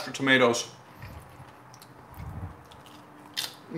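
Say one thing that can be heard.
A man crunches a tortilla chip while chewing.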